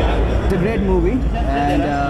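A young man speaks calmly into microphones close by.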